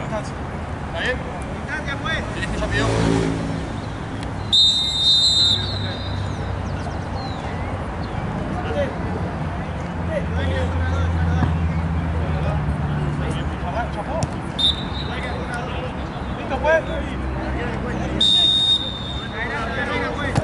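Boys call out to each other across an open field.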